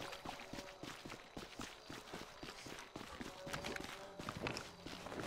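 Footsteps crunch over snow at a steady pace.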